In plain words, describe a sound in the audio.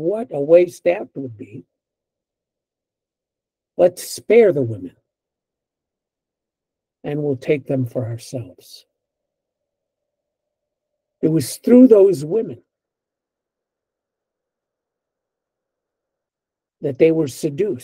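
An older man speaks calmly in short bursts over an online call.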